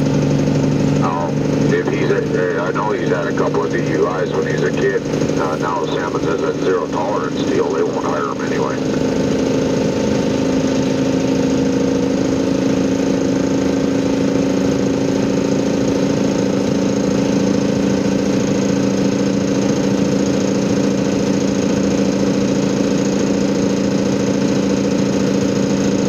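A vehicle engine hums steadily from inside the cab.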